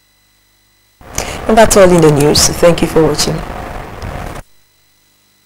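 A woman reads out the news calmly through a microphone.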